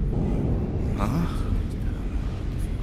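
A man exclaims in surprise.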